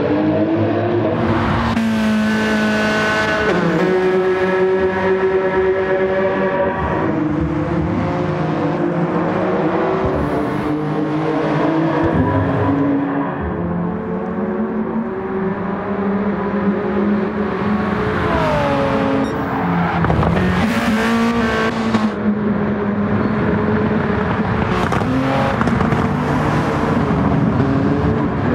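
A racing car engine roars loudly, revving up and dropping as gears change.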